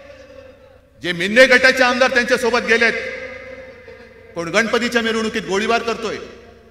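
A man speaks forcefully into a microphone through loudspeakers that echo widely.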